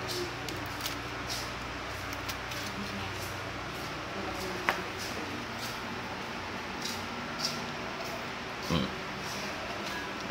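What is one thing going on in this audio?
Fingers rub and rustle softly against hair and skin close by.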